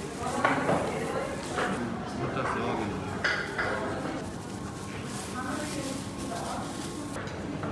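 Gloved hands rustle and toss strands of noodles.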